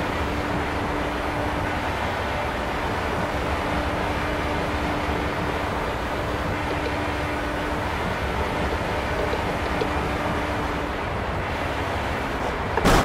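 An open-wheel race car engine drones at high speed.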